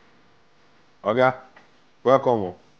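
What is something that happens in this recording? A man speaks loudly and warmly nearby.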